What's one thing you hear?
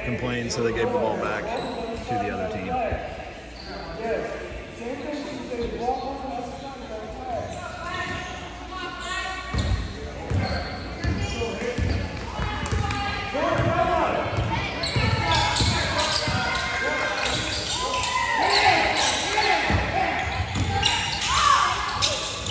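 People talk and call out in a large echoing gym.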